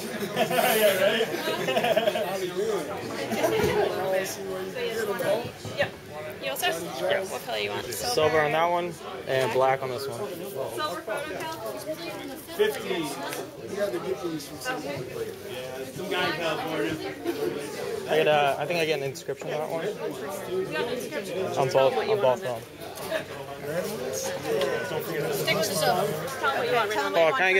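Several men and women talk close by.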